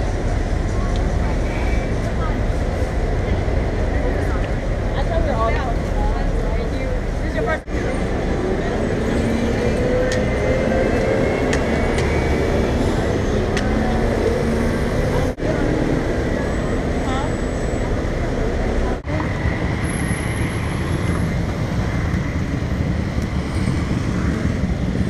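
City traffic rumbles steadily nearby.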